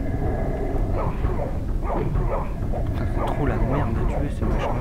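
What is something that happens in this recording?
A creature hisses and snarls during a fight.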